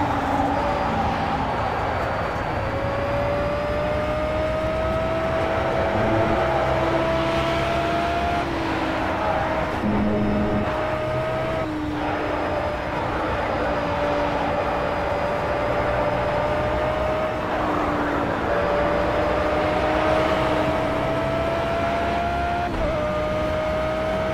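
A racing car engine roars loudly, rising in pitch as it speeds up and dropping sharply with each gear change.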